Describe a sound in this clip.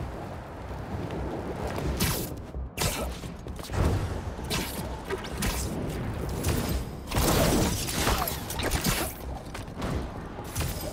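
Wind rushes past in loud, swelling gusts.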